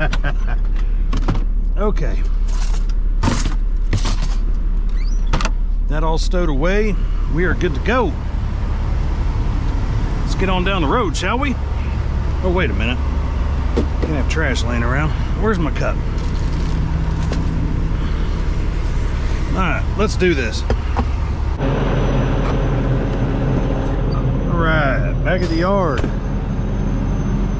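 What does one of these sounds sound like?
A truck's diesel engine idles with a low, steady rumble.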